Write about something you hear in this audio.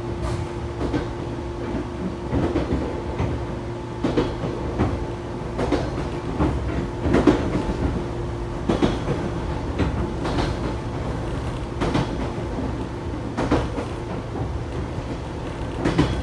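Wheels clack over rail joints.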